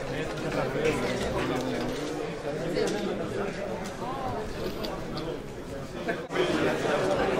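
A crowd of men talk and shout over each other in a busy room.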